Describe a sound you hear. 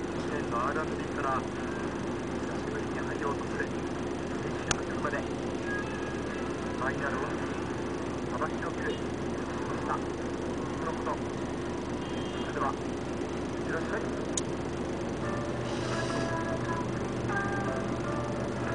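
A heavy loader engine rumbles steadily nearby.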